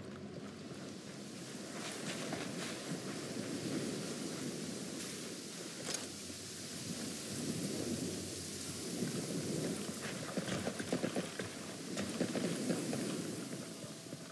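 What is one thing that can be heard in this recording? Footsteps crunch and rustle softly through grass and undergrowth.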